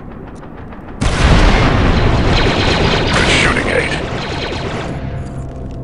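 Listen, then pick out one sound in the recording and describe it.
Gunfire blasts loudly in a rapid burst.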